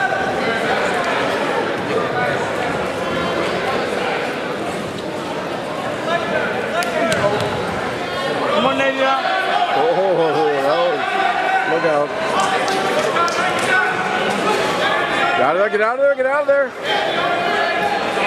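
A crowd chatters and calls out throughout in a large echoing hall.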